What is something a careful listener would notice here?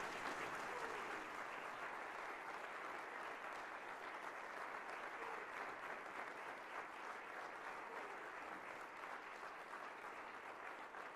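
An audience applauds steadily in a large echoing hall.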